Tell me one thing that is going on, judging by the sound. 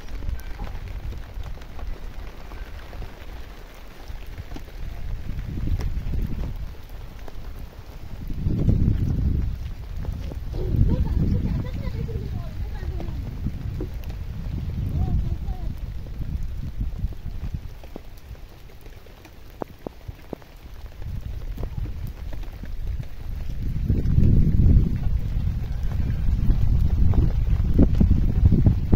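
Wind gusts roar and buffet outdoors.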